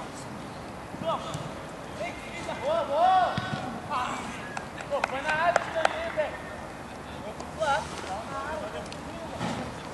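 Young men shout to each other across an open pitch.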